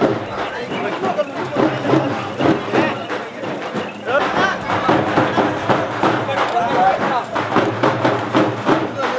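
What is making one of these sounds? A crowd of men chatters and calls out outdoors.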